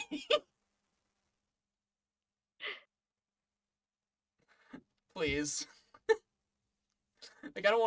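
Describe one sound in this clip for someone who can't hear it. A young man laughs over an online call.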